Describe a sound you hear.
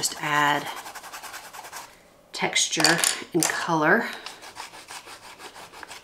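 A colored pencil scratches softly across paper.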